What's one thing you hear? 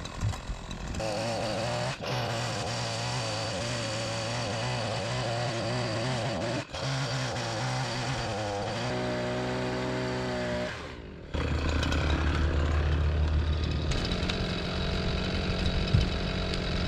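A chainsaw engine runs loudly, revving and idling.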